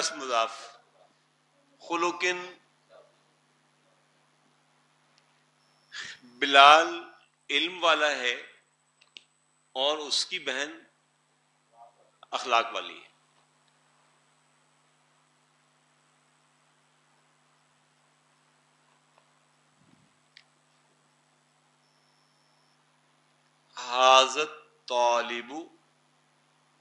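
An elderly man speaks calmly in short bursts through a clip-on microphone, with long pauses.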